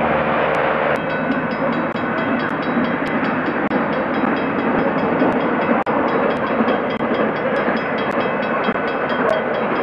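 A steam locomotive chuffs heavily in the distance, approaching.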